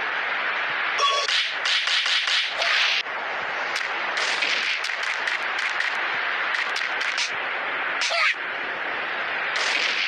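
Fighting game sound effects of hits and slashes crackle rapidly.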